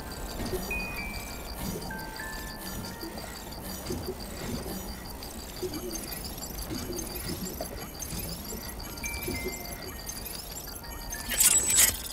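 A baby whimpers and coos softly.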